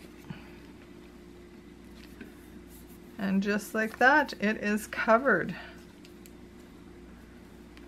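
Paper rustles softly as it is folded and pressed.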